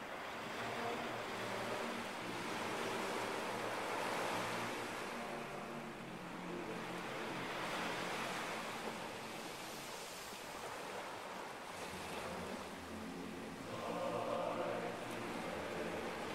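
Small waves wash gently onto a sandy shore and draw back.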